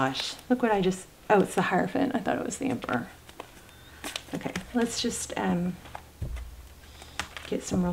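A deck of playing cards is handled and shuffled, with soft slaps and rustles.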